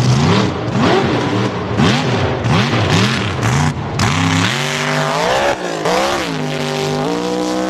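A truck engine roars and revs hard, rising and falling in pitch.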